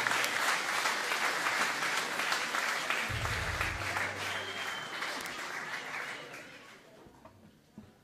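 An audience applauds and cheers loudly, then the applause dies away.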